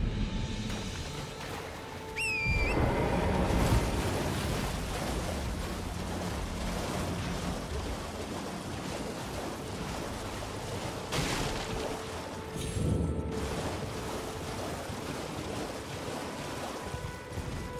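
Horse hooves splash through shallow water.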